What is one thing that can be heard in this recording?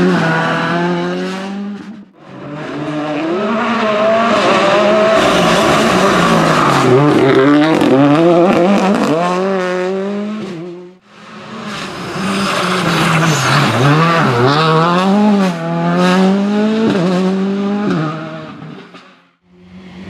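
A rally car engine revs hard and roars past close by.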